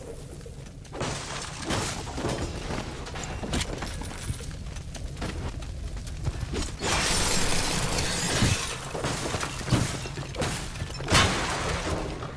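A blast of icy spray hisses.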